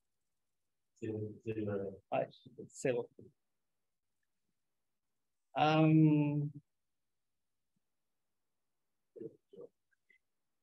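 A middle-aged man speaks calmly over an online call.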